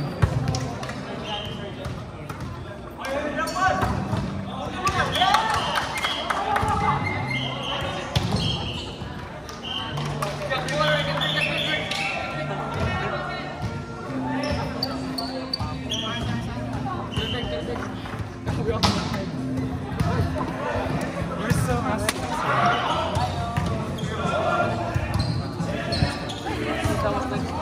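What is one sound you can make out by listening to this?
Young men call out and chatter across a large echoing hall.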